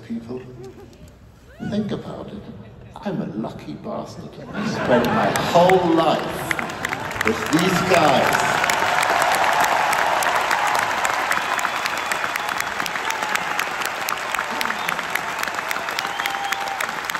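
An orchestra plays.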